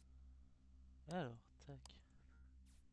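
An electronic bleep sounds and falls in pitch.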